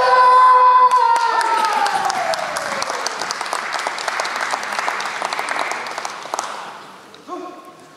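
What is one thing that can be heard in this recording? An audience claps in a large echoing hall.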